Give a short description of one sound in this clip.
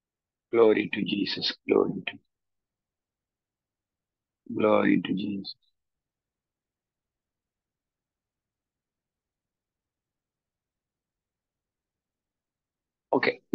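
A man speaks calmly through an online call, with long pauses.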